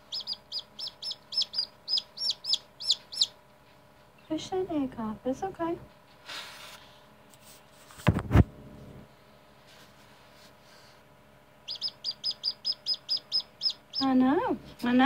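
A newly hatched chick peeps in quick, shrill bursts.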